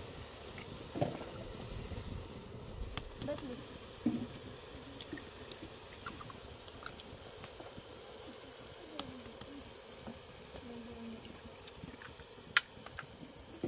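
Eggshells crack against a pot's rim.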